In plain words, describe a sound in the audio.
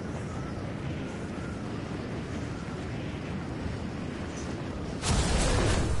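Wind rushes steadily past during a high glide.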